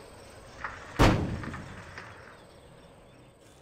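A rocket launcher fires with a sudden loud blast that echoes away.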